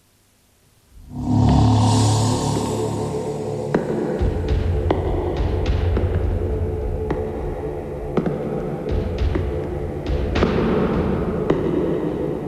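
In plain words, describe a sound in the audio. A subway train rumbles along a platform in an echoing underground station.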